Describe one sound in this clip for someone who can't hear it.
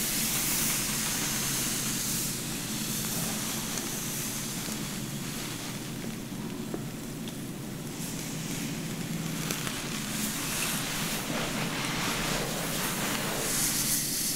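A comb brushes softly through long hair.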